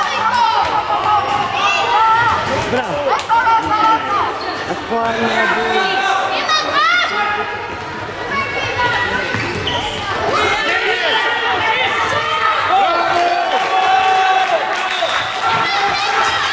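Children shout to each other in a large echoing hall.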